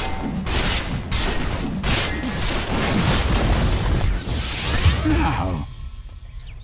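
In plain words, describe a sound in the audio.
Magic spells crackle and burst loudly during a video game battle.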